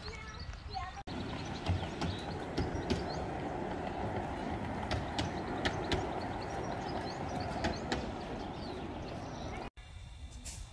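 A miniature steam train rumbles steadily along its track.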